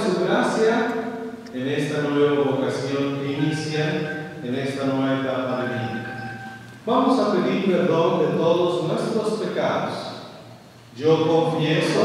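A group of people sings slowly together in an echoing hall.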